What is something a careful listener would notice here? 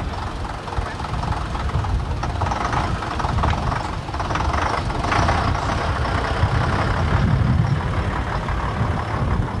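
An old bus engine rumbles and chugs as the bus rolls slowly forward.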